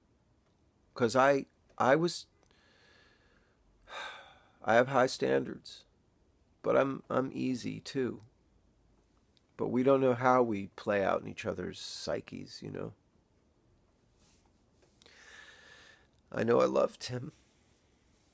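A man speaks calmly and close to the microphone, in short bursts with pauses.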